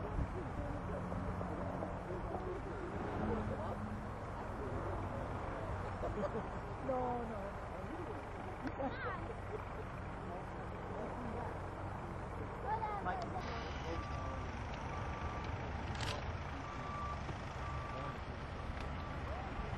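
A small propeller plane drones overhead.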